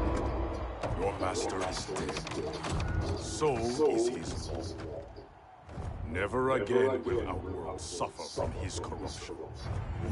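A man speaks slowly in a deep, menacing voice.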